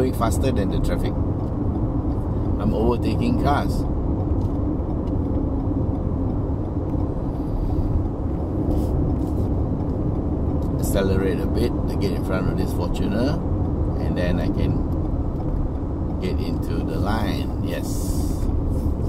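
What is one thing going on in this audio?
A middle-aged man talks calmly and close by.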